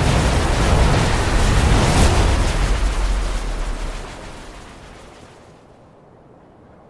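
A loud rushing roar, like a strong gust of wind, swells and then slowly fades away.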